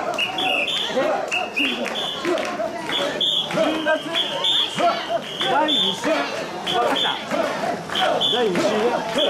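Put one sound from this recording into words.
A crowd of men and women chants in rhythm while carrying a portable shrine.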